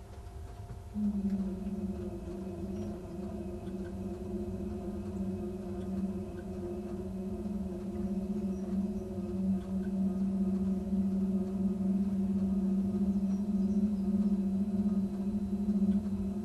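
A train's motor hums steadily, growing a little louder.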